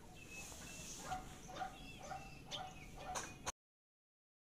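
A duck quacks repeatedly close by.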